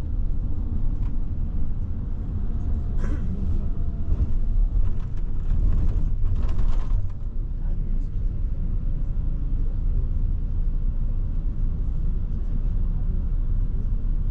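Wind buffets a microphone with a heavy, steady rumble.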